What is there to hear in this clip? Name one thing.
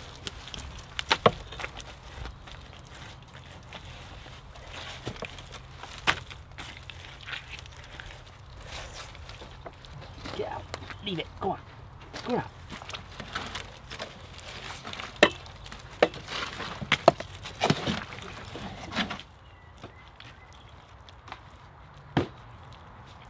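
Wet mud squelches and slaps under a man's hands.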